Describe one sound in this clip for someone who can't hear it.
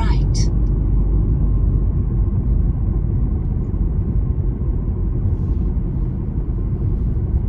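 A car engine hums steadily with a low road rumble from inside a moving car.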